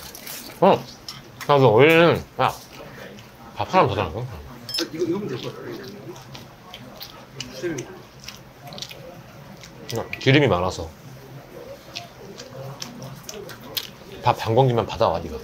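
A young man talks casually and close by.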